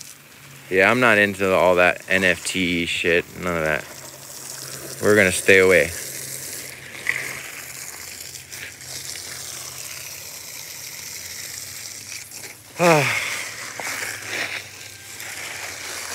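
Water gushes from a hose and splashes onto soil and plant pots.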